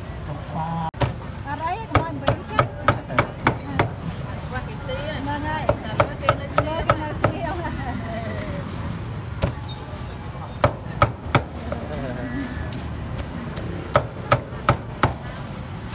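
A cleaver chops meat on a wooden board with sharp knocks.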